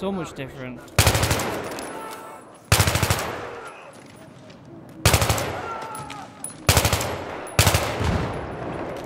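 Explosions boom and echo.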